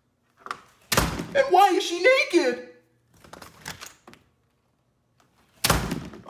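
A door handle clicks and a door swings open.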